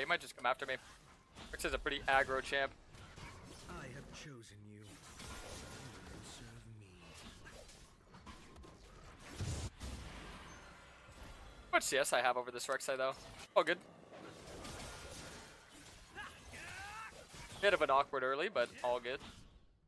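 Game sound effects clash and whoosh.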